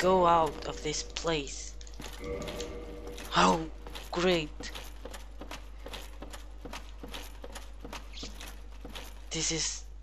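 Armored footsteps run on stone.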